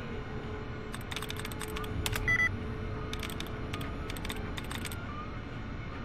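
A computer terminal clicks and beeps as text is entered.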